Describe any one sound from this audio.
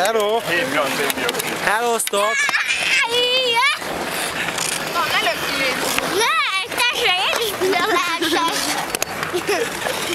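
A young child talks and giggles close by.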